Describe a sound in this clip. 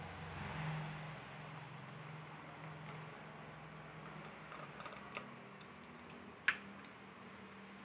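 Thick liquid pours and splashes softly into a strainer.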